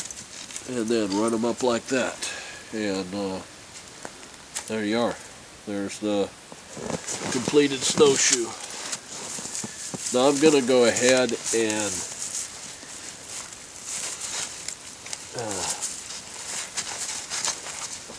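Spruce boughs rustle and swish as they are handled.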